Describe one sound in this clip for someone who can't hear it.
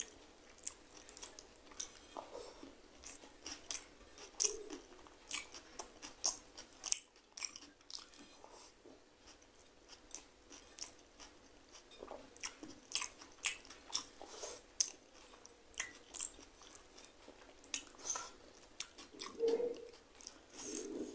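Fingers squish and mix soft rice close by.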